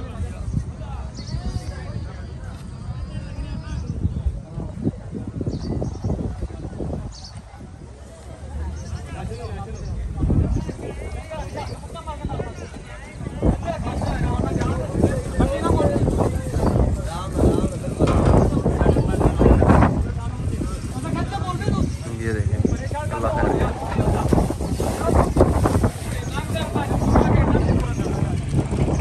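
Men shout and call out nearby, outdoors.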